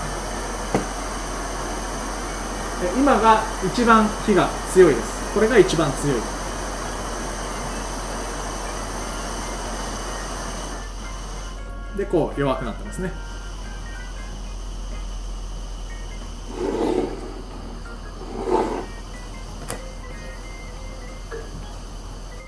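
A gas burner hisses steadily.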